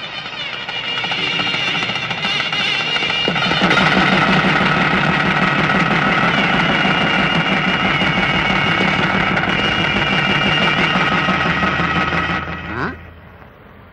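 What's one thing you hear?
A long horn blows a steady, wavering tune.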